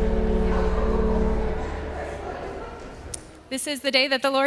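An organ plays a sustained chord that slowly fades in a large echoing hall.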